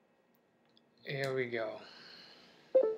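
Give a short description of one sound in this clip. A young man speaks briefly and calmly close by.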